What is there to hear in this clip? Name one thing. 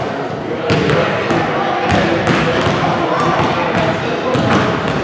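A crowd of young people talk and shout in a large echoing gym.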